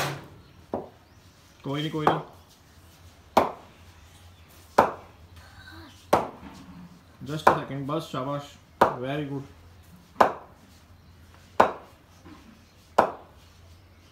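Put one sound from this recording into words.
A wooden stick knocks sharply against something hard, again and again.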